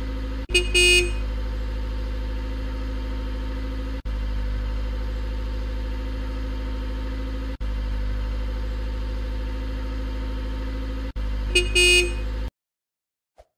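A truck engine hums steadily as it drives past.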